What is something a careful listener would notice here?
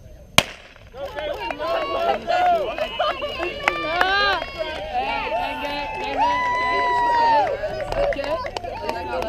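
A crowd of spectators outdoors cheers and shouts loudly.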